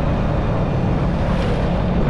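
A truck drives past.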